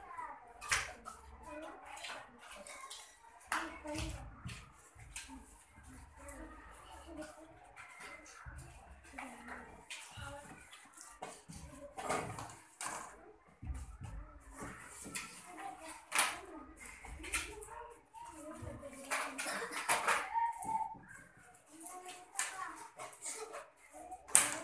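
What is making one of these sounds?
Plastic hoops clatter against the floor.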